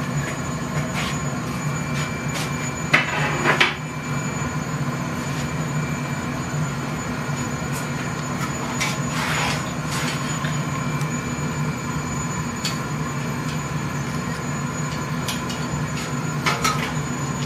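Metal clanks and knocks now and then.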